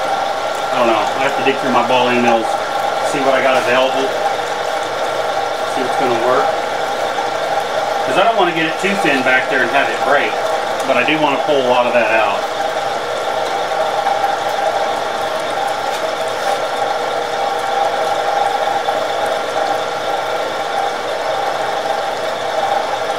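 A milling machine whirs steadily as its cutter grinds through metal.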